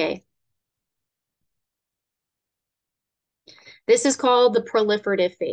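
A young woman speaks calmly into a microphone, as if over an online call.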